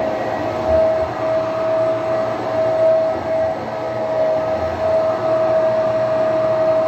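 A vacuum cleaner runs with a steady loud whine and roar.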